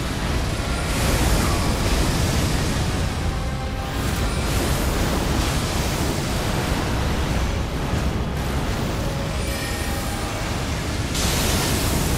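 Magic blasts burst with a loud roar.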